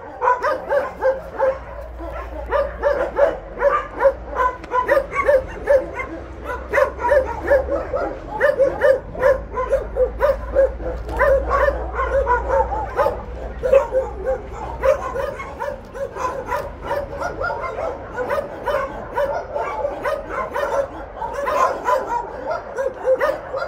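Dogs whine and whimper close by.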